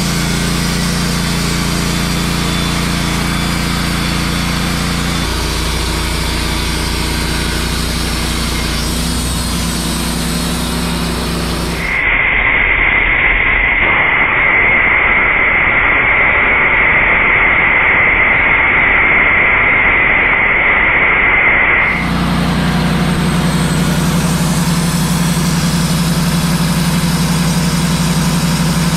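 A sawmill engine runs with a steady hum.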